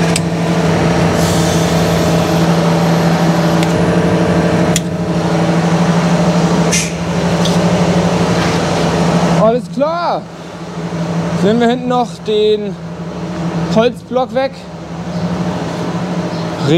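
A tractor engine idles with a steady, deep hum nearby.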